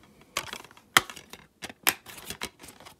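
A disc clicks against its plastic case.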